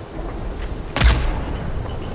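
An arrow is loosed from a bow with a sharp twang.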